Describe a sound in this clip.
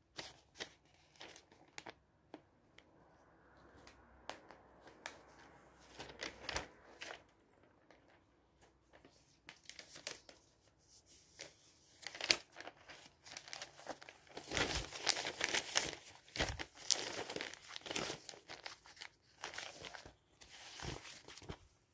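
Glossy paper pages rustle and crinkle as they are turned and handled close by.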